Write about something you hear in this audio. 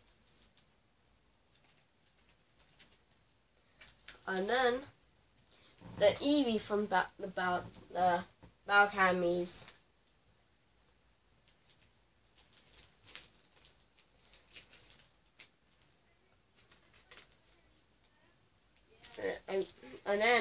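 Card packs rustle softly as a boy handles them.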